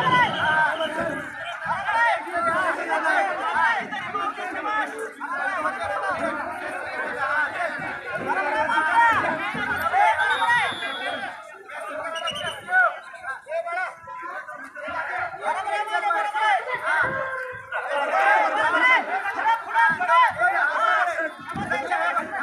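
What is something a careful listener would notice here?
A crowd of men chatter and call out in the open air.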